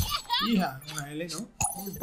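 A small object bursts with a sparkling pop.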